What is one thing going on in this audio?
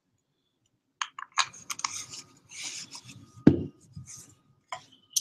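A glass jar clinks against a table.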